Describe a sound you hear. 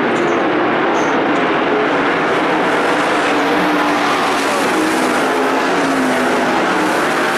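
Race car engines roar loudly, rising and falling in pitch.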